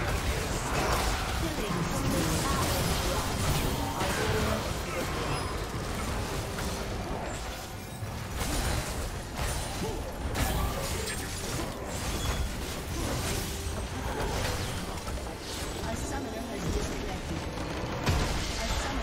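Spell blasts and clashing hits from a video game battle crackle and boom.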